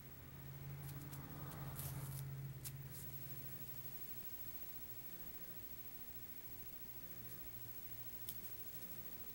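A small ball toy rattles as a kitten bats it.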